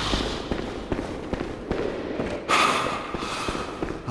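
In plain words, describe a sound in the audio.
A large blade whooshes through the air and strikes.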